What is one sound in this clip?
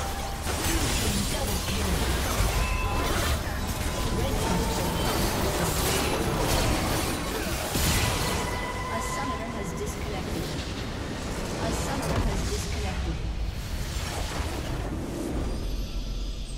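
Game spell effects and battle sounds crash and clash rapidly.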